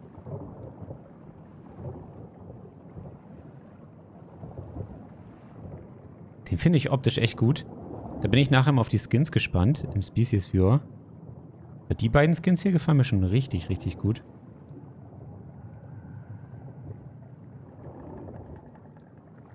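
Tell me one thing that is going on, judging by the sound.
A low, muffled underwater rumble drones steadily.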